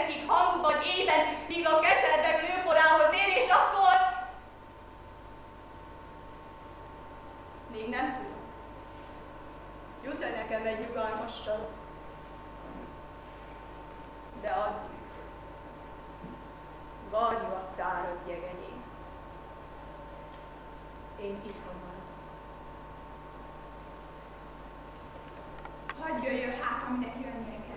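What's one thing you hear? A woman speaks expressively, in bursts with long pauses.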